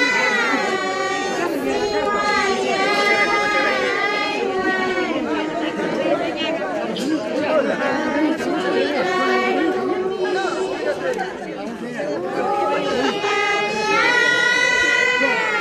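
A group of women sings together in high voices.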